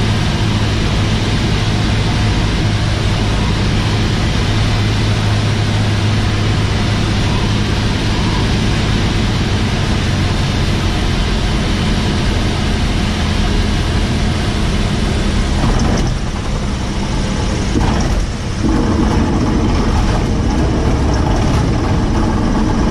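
A small plane's propeller engine drones loudly and steadily from inside the cockpit.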